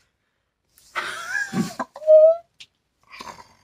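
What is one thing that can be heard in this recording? A young woman squeals and cries out emotionally.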